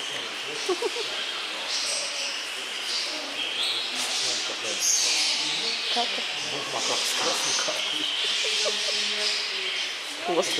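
A baboon's feet pad softly across a wire mesh floor.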